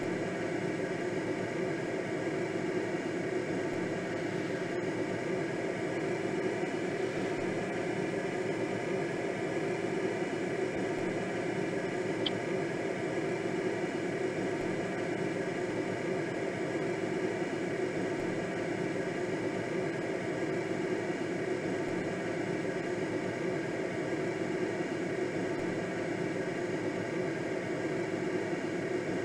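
Wind rushes steadily past a gliding aircraft.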